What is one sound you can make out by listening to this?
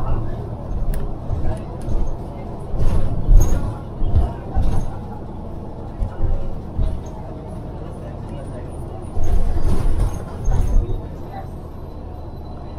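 Cars drive past on a nearby road.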